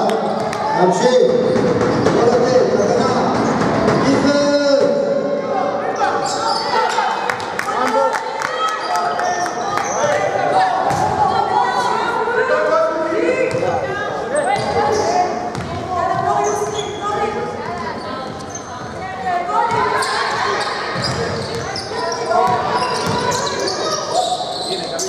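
Sneakers squeak sharply on a court floor in a large echoing hall.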